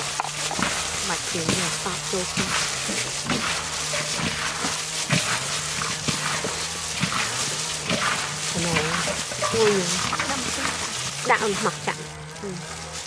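Shells clatter and rattle as hands mix them.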